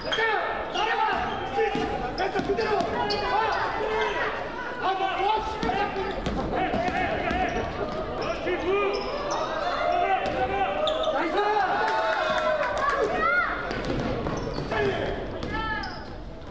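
A basketball bounces on the court with hollow thuds.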